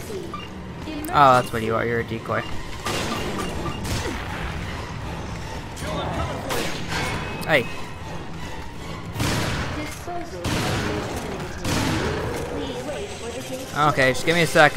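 A monster roars and snarls loudly.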